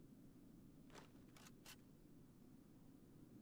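A plasma rifle fires a short burst.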